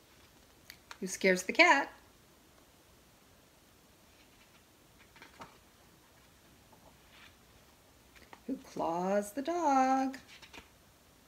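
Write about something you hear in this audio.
A middle-aged woman reads aloud calmly, close by.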